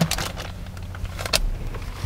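A chip bag crinkles and rustles close by.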